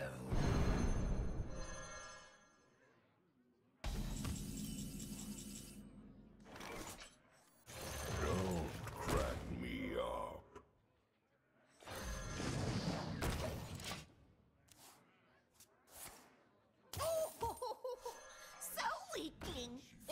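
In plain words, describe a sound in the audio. Game sound effects chime and whoosh as cards are played.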